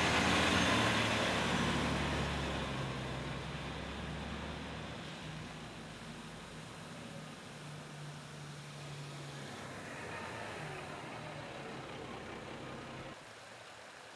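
A fire engine's diesel engine idles with a low rumble nearby.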